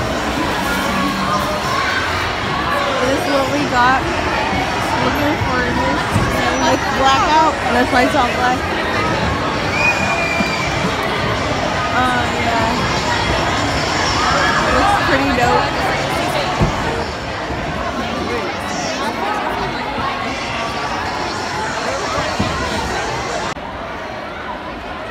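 A crowd cheers and chatters loudly in a large echoing hall.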